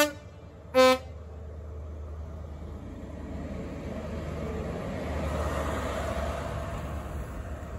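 Train wheels roll past on the rails close by.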